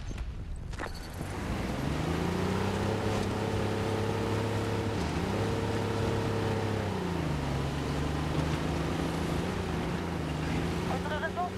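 Tank tracks clatter over rough ground.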